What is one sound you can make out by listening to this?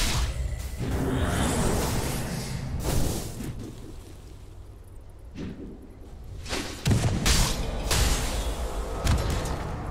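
Spells crackle and blast in a game battle.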